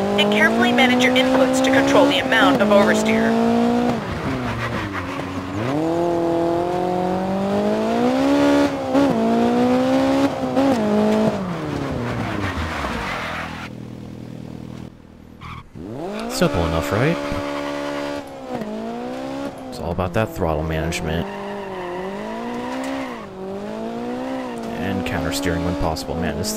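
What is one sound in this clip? A rally car engine revs hard, rising and falling as the car shifts gears.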